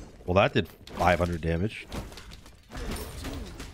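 Magical spell blasts crackle and burst in quick succession.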